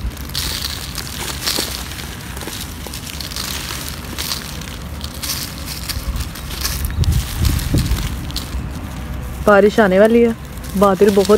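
Dry sand crumbles and crunches between fingers, close up.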